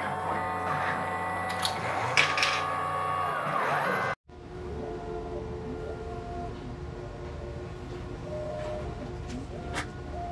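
Robot arm motors whir as the arms move.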